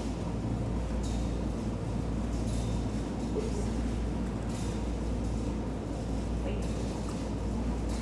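A woman speaks to a dog.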